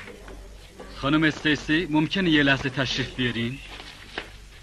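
A man speaks calmly and politely.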